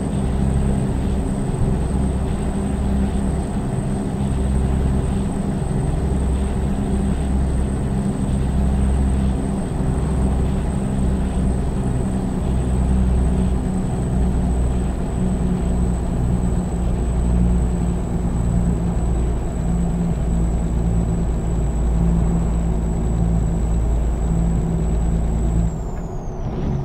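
A semi truck's diesel engine drones while cruising on the highway.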